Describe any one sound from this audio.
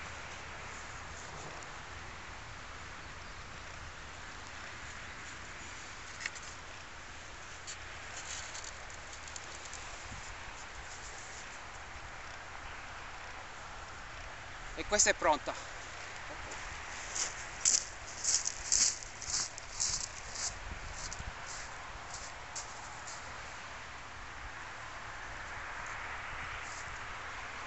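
Small waves wash gently onto a shingle beach.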